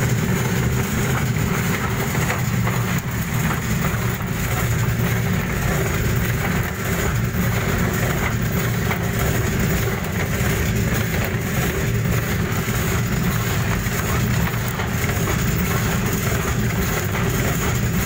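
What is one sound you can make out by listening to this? Seeds rustle and grind as the screw conveyor pushes them along.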